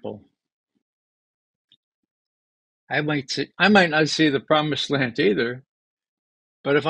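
An elderly man speaks calmly and close to a microphone, with short pauses.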